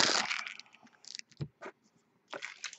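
Cards tap down onto a stack.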